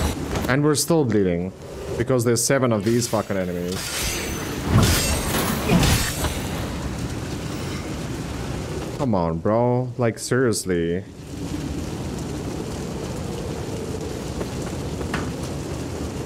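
A fire roars and crackles.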